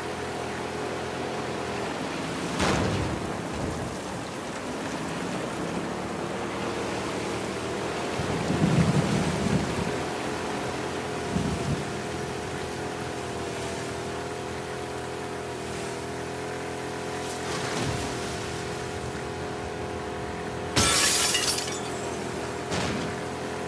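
Water splashes and sprays against a moving boat's hull.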